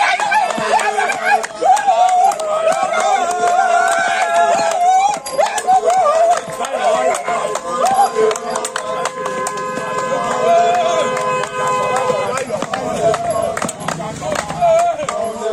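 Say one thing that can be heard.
A group of young men shout and cheer close by, outdoors.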